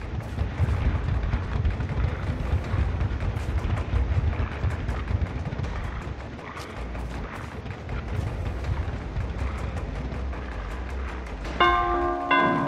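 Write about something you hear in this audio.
Heavy footsteps thud steadily on the ground.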